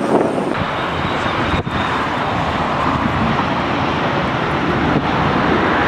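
A jet airliner's engines roar steadily as it taxis nearby.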